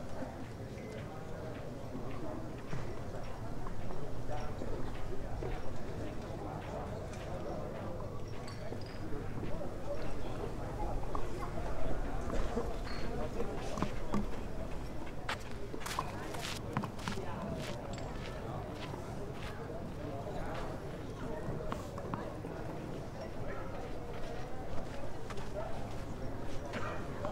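A crowd of spectators murmurs and chats outdoors.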